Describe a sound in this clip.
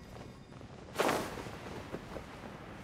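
A rush of air swells as a figure leaps and glides.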